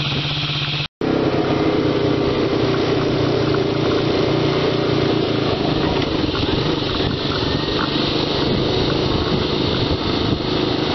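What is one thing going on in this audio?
A quad bike engine drones steadily while riding across grass.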